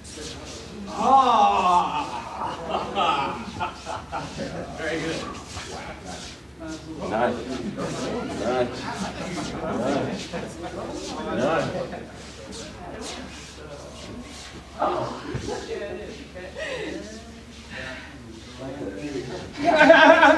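A woman speaks, explaining, in a large echoing hall.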